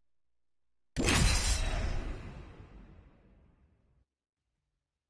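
A loud rumbling game transition sound swells and slowly fades.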